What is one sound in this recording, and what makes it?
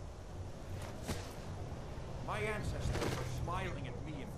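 A sword slashes into a body with a heavy thud.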